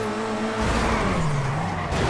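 Tyres screech as a car spins out.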